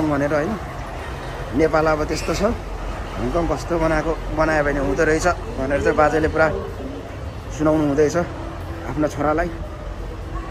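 A man speaks close by with animation.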